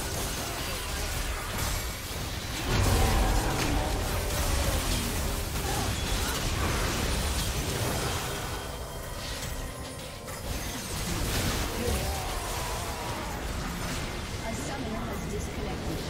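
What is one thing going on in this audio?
Game spells crackle and blast in a busy fight.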